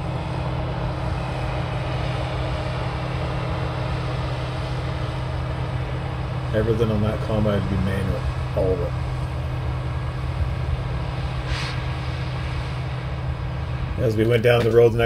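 A combine harvester's engine drones steadily.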